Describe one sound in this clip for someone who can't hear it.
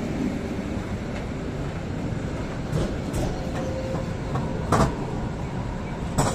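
A second tram rolls past on its rails.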